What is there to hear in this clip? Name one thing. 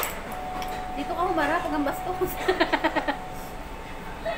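Young women laugh together.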